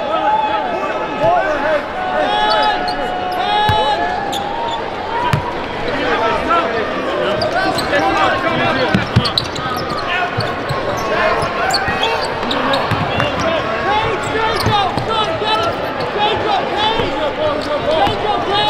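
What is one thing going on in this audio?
A large crowd chatters and cheers, echoing in a big arena.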